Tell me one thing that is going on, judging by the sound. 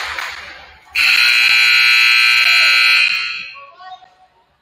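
A referee's whistle blows a long, shrill blast.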